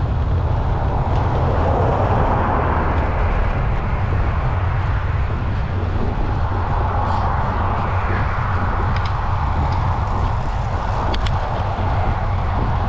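Wind rushes loudly past, outdoors.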